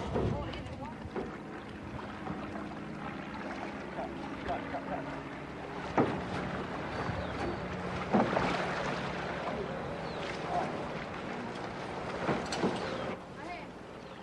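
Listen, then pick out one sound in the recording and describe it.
A paddle splashes and dips into water.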